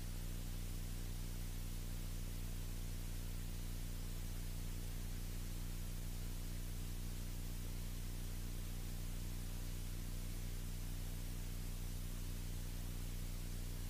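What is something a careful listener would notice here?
A small plane's engine drones steadily and loudly.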